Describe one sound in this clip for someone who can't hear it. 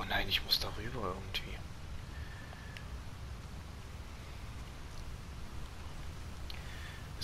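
Seabirds call sharply from a cliff.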